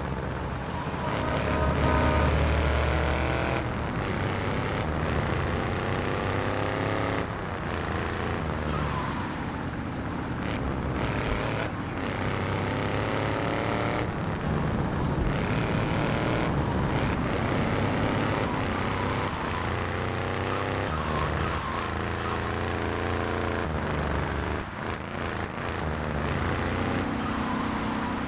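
A truck engine hums and revs as the vehicle drives along.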